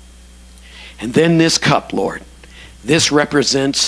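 A man speaks loudly through a microphone in a large room.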